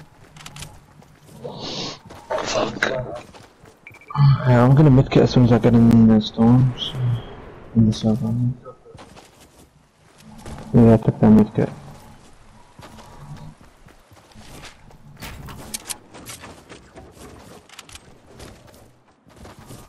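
Footsteps patter over grass.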